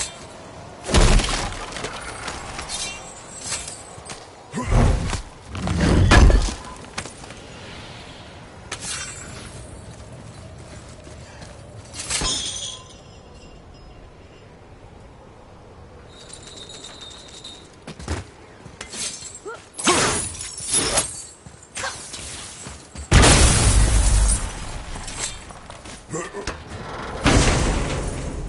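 A heavy chest lid creaks and thuds open.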